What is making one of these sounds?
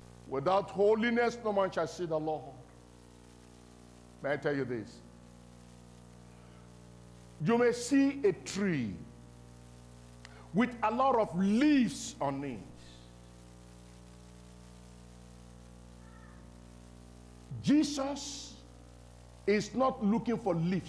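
A middle-aged man preaches forcefully through a microphone, in bursts with pauses between them.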